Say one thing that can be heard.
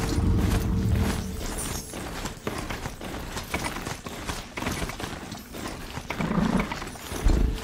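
Metal hooves clatter steadily over rocky ground.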